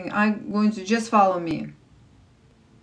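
A woman speaks briefly and with animation, close to the microphone.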